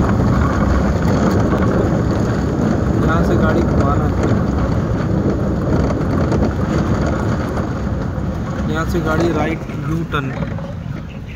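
A man talks nearby.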